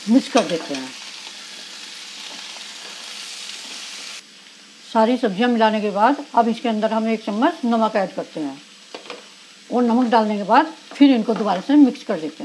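A wooden spatula scrapes and stirs vegetables in a frying pan.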